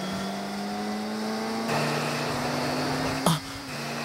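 A motorcycle engine roars at speed.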